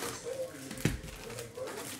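A cardboard box thumps onto a table.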